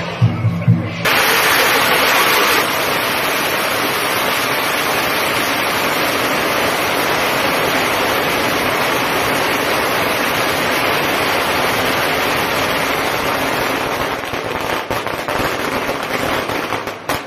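Firecrackers crackle and bang in a rapid, loud string nearby, outdoors.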